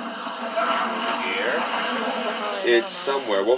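Game spell effects whoosh and shimmer.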